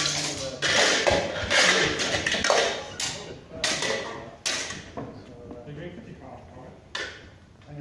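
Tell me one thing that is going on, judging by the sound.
Steel swords clash and clang loudly, ringing in an echoing hall.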